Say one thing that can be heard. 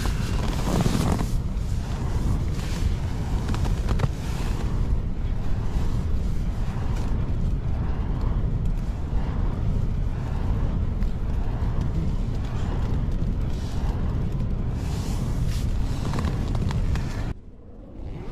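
A sleeping bag rustles as a man shifts in it.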